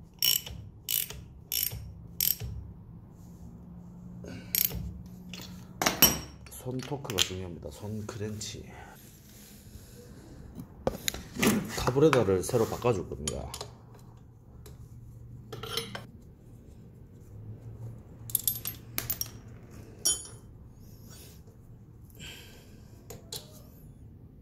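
Metal tools clink and knock against an engine.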